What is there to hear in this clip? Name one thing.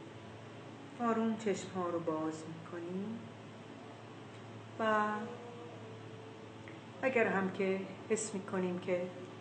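An older woman speaks calmly and closely into a microphone.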